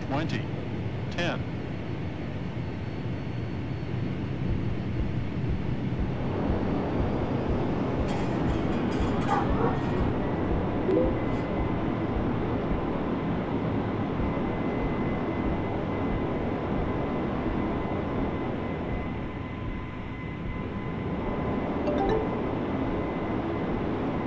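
Jet engines roar steadily, growing louder as an airliner speeds down a runway.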